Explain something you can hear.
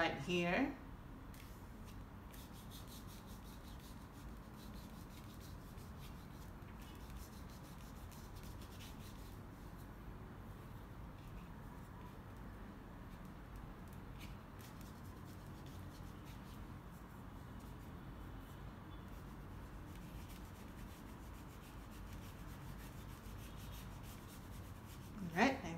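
A hand rubs softly across paper.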